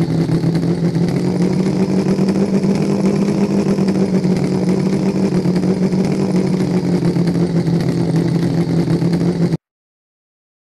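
A vehicle engine drones steadily.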